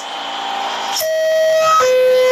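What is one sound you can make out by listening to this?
A two-tone door chime rings out.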